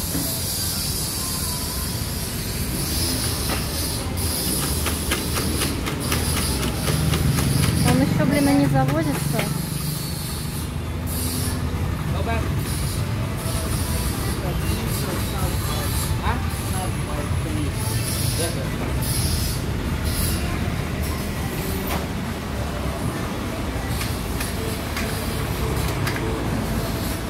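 Traffic passes by on a road outdoors.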